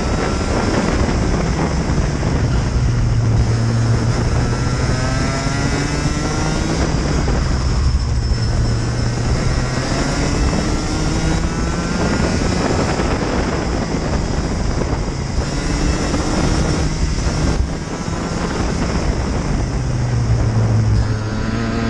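Other kart engines whine nearby.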